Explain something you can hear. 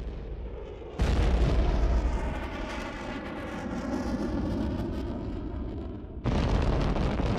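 A jet engine roars overhead as a fighter jet flies past.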